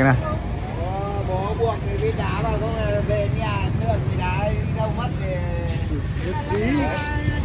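Men talk with each other nearby outdoors.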